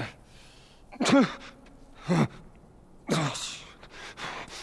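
A man speaks weakly through strained breaths.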